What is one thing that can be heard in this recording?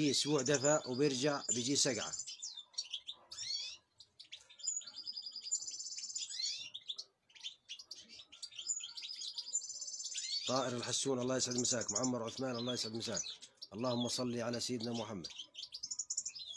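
Small birds chirp and twitter in the trees.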